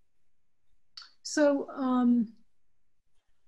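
An older woman speaks calmly over an online call.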